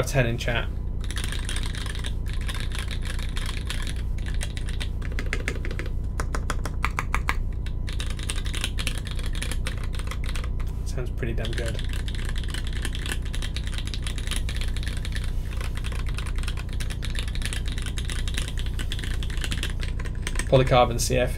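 Fingers type quickly on a clacky mechanical keyboard.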